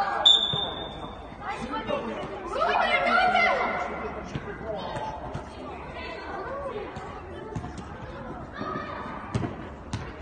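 A ball is kicked with dull thumps.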